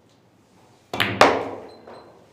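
A cue strikes a ball with a sharp knock.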